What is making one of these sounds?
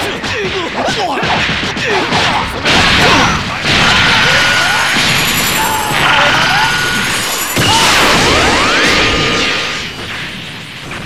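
Punches and energy blasts crash and whoosh in a fast game fight.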